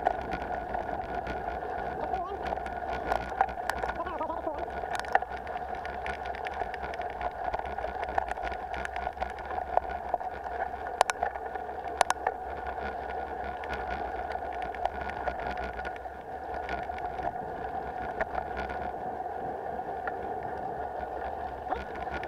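Bicycle tyres crunch and rattle over a rough dirt trail.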